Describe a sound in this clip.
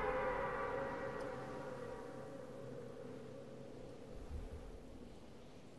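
Wind rushes past in a steady gliding whoosh that slowly fades.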